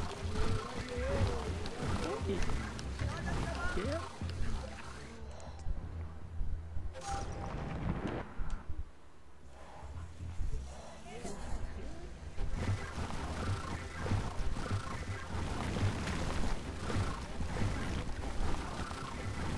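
A heavy ball rumbles as it rolls over sand.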